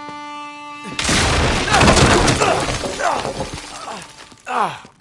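Wooden boards crash and splinter heavily.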